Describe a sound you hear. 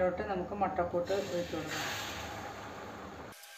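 Beaten egg sizzles as it is poured into a hot pan.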